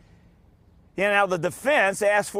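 A middle-aged man speaks calmly and clearly into a microphone.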